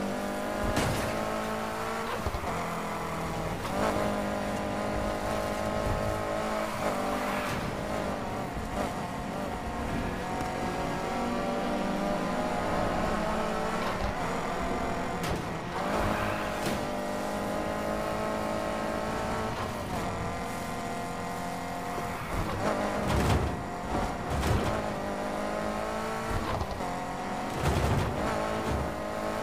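A car engine roars and revs up through the gears.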